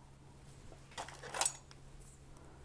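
A knitting machine carriage slides across with a short clatter.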